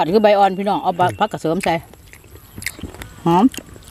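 A woman chews and smacks her lips while eating.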